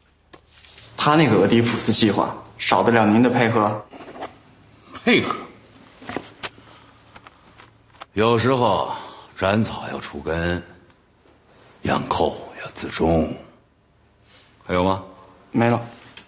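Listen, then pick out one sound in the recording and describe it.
A man speaks calmly and firmly up close.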